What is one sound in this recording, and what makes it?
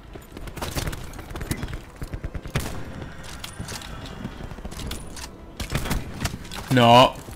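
Gunshots fire in quick bursts close by.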